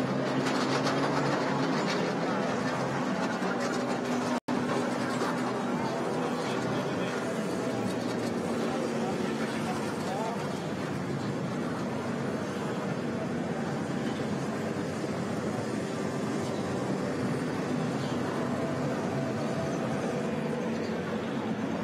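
A tractor engine hums steadily in the distance outdoors.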